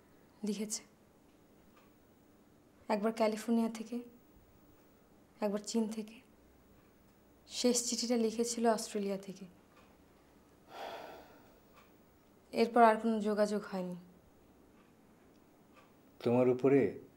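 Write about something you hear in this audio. A woman speaks close by in a tense, emotional voice, with pauses between phrases.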